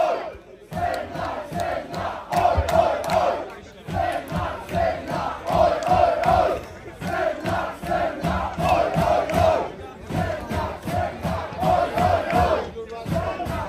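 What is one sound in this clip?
A punk band plays loud, fast music outdoors.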